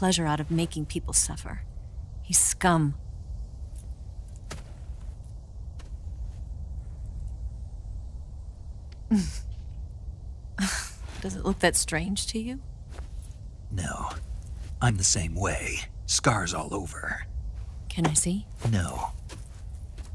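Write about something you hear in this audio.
A young woman speaks quietly and sadly, close by.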